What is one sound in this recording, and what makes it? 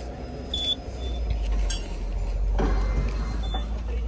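A metal turnstile clicks and clunks as it turns.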